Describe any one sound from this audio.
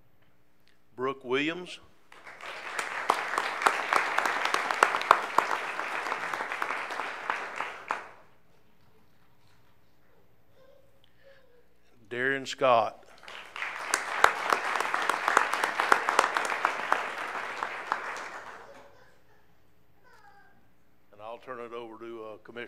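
A man speaks into a microphone over a loudspeaker, calmly announcing.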